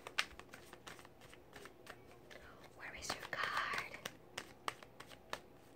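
Playing cards riffle and snap as they are shuffled by hand.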